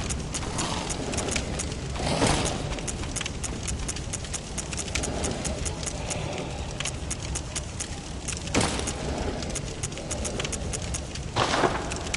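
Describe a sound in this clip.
Short electronic clicks tick quickly, one after another.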